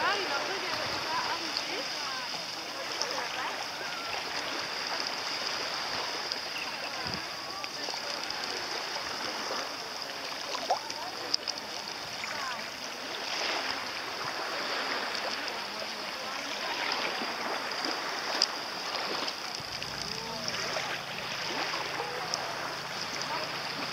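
Wind blows over open water.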